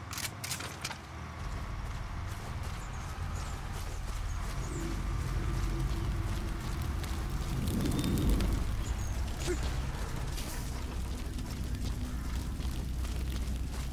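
Footsteps run quickly through grass and dirt.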